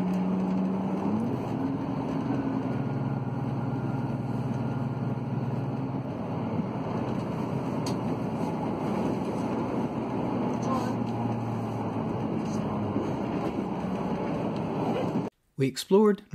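A train rumbles steadily across a bridge.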